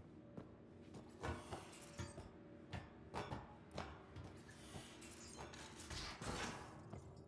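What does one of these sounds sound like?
Hands and feet clank on a metal ladder.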